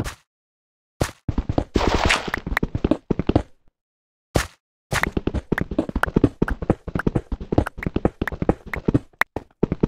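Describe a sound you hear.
A pickaxe rapidly chips and breaks stone blocks.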